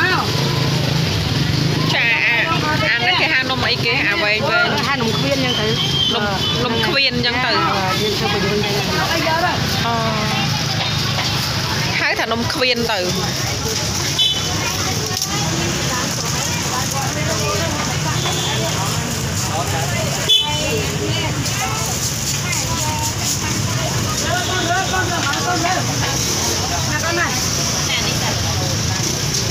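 Voices of men and women chatter nearby in a busy outdoor market.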